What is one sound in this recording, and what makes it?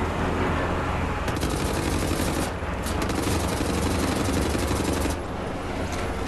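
Twin machine guns fire in rapid bursts.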